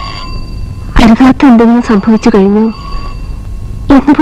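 A young woman sings loudly and close by.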